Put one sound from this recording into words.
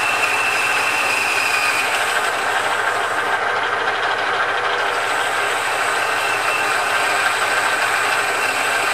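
A metal lathe spins and hums steadily.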